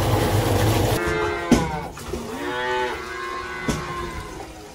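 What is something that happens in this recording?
A calf bleats nearby.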